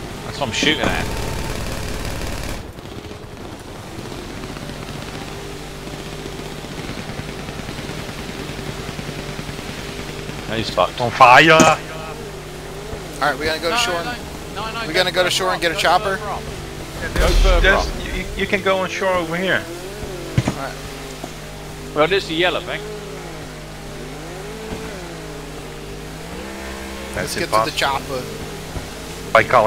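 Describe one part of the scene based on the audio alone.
Water sprays and hisses behind a speeding boat.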